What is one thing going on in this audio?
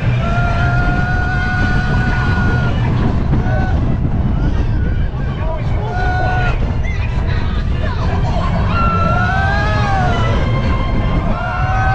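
A roller coaster rumbles and clatters loudly along its track.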